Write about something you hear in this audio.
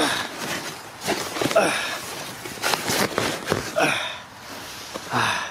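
A paper bag rustles and crinkles close by.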